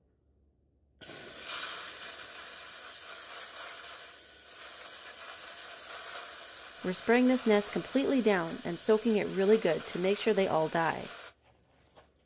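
A spray can hisses steadily in a strong jet.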